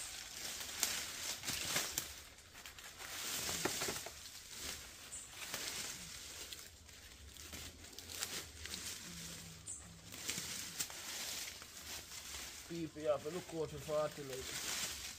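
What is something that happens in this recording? Leaves and stems rustle as plants are pulled aside.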